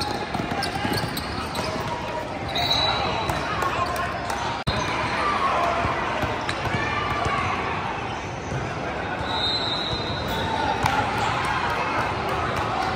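Young players and spectators call out and chatter in a large echoing hall.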